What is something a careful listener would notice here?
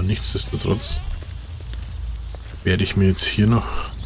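A wooden door opens with a knock.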